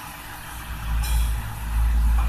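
Small metal vessels clink softly.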